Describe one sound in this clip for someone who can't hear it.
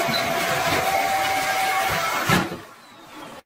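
A vacuum cleaner roars up close.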